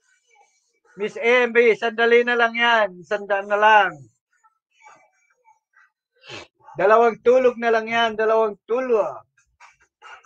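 A middle-aged man sings in short loud phrases close to a microphone.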